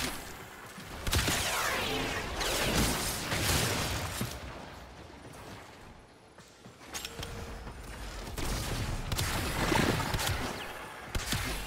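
Glowing energy whooshes and crackles.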